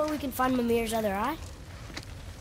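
A boy asks a question in a clear, close voice.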